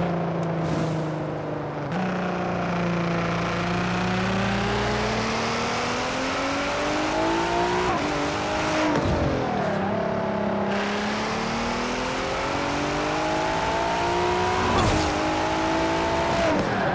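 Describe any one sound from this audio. A sports car engine roars and climbs in pitch as it speeds up, dropping briefly with each gear change.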